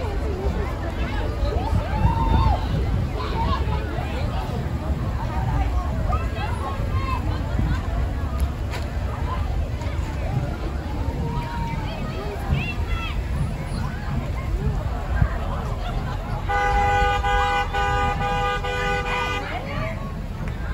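A crowd of people chatters and cheers outdoors along a street.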